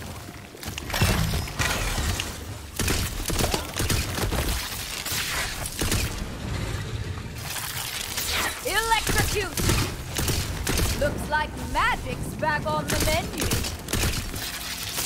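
Explosions burst loudly.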